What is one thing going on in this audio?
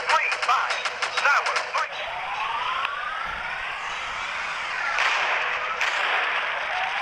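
Explosions boom in quick bursts.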